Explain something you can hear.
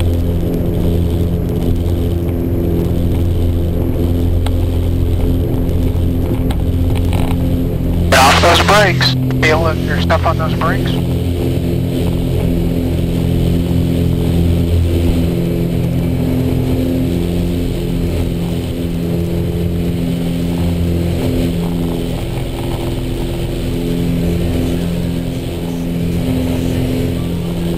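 A small propeller plane's engine roars loudly and steadily from inside the cockpit.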